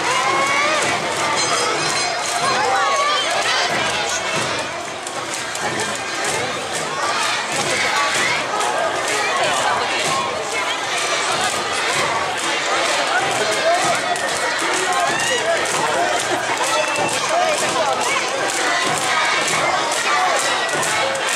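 A crowd of onlookers chatters nearby.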